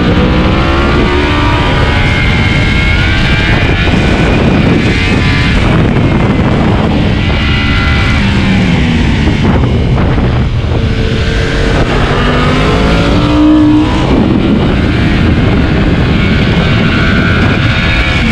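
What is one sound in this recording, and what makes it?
A motorcycle engine roars loudly at high revs, rising and falling as it shifts gears.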